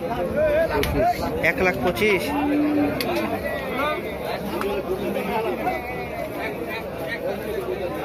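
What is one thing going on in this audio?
A crowd of men talk and call out nearby, outdoors.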